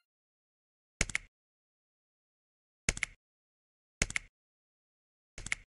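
Short button clicks sound from a game menu.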